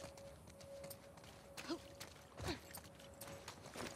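Footsteps splash through shallow water on pavement.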